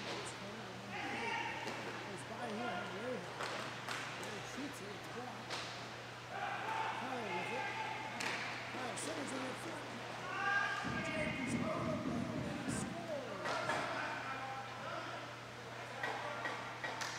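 Young men shout to each other across the rink.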